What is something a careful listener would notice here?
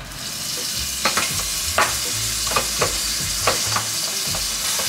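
A knife taps sharply on a cutting board.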